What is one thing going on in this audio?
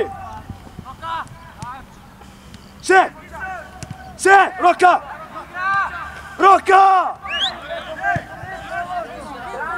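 Young players shout loudly to each other across an open field outdoors.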